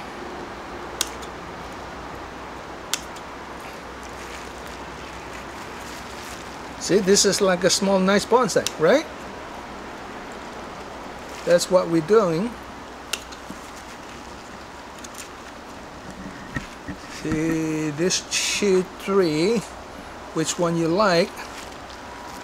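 Pruning shears snip sharply at twigs.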